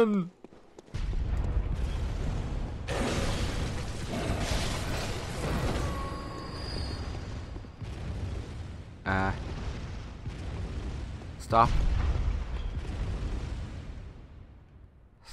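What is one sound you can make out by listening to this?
Explosions boom and rumble heavily.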